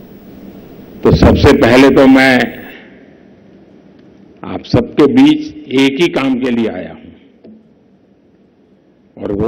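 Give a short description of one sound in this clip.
An elderly man speaks with animation into a microphone over loudspeakers.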